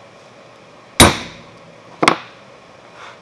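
A metal stamp is struck sharply with a hammer.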